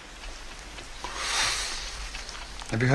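A man exhales a breath of smoke.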